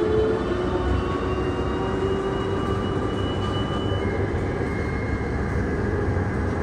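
A jet airliner taxis nearby with a steady engine whine.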